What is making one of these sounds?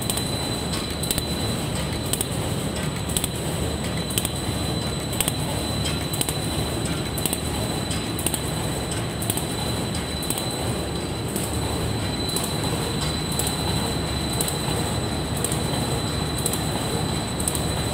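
A high, steady whine sounds from a machine.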